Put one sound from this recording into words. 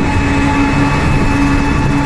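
A motorbike engine putters nearby.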